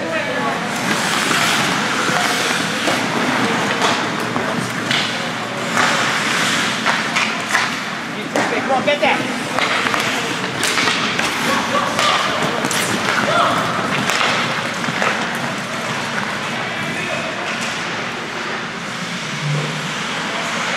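Skates scrape and hiss across the ice in an echoing rink.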